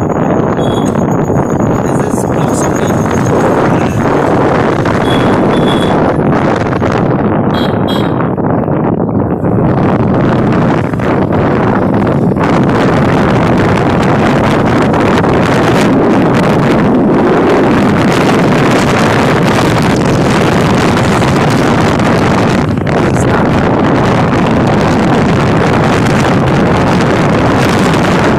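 Wind roars loudly and steadily.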